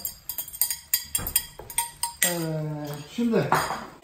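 A metal lid clanks as it is lifted off a frying pan.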